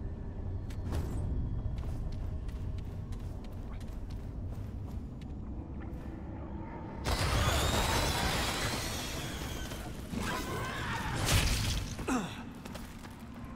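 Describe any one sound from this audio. Heavy armoured footsteps crunch over rough ground.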